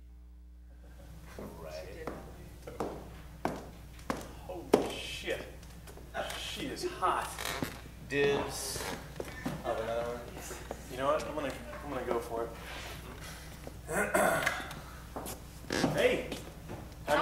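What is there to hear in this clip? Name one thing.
A man speaks on a stage, heard from across a room.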